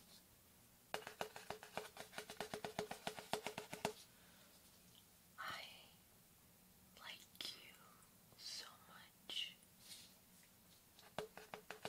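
Fingernails tap quickly on a stiff card.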